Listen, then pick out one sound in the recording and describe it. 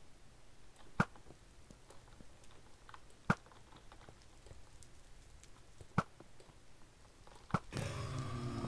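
A bow twangs sharply as arrows are shot, several times.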